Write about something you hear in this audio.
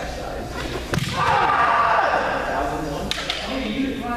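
Bamboo swords strike with sharp cracks.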